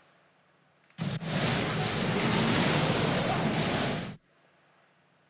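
A burst of icy magic crackles and roars loudly.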